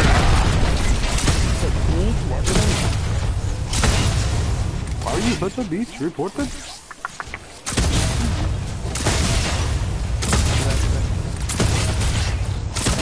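Gunfire and blasts from a video game battle ring out.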